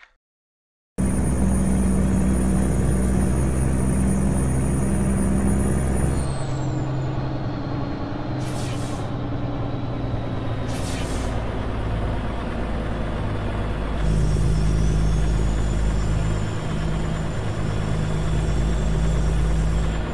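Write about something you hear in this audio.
A truck engine hums steadily from inside the cab while driving.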